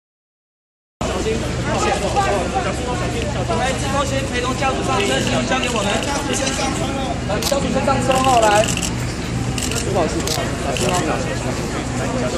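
A crowd of men and women talks over one another outdoors.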